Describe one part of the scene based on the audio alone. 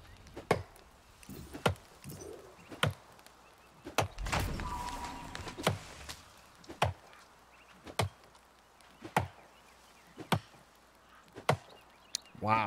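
An axe chops into a tree trunk with steady, evenly spaced blows.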